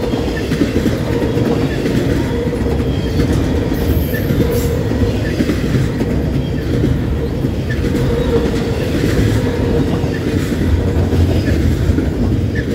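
A long freight train rumbles and clatters steadily past up close.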